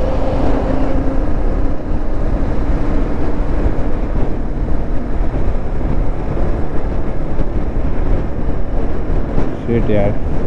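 Wind roars past a helmet microphone on a moving motorcycle.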